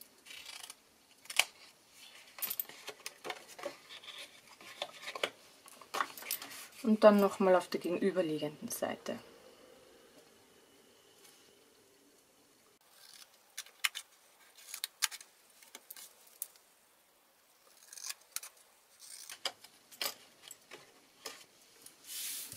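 Small scissors snip through card with short crisp clicks.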